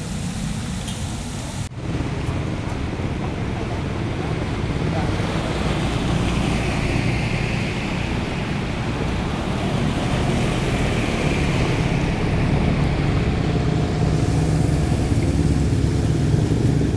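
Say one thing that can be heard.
Motorbike engines hum as they ride past.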